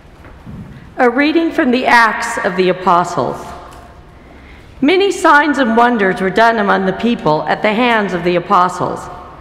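A woman reads aloud calmly into a microphone in an echoing hall.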